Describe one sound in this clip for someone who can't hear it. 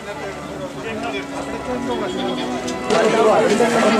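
Distant people talk faintly outdoors.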